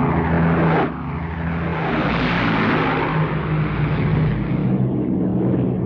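A low-flying plane roars past close by.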